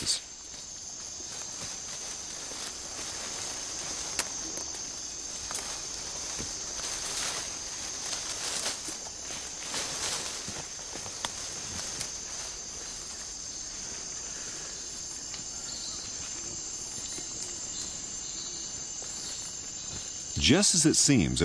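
Insects buzz steadily in a forest.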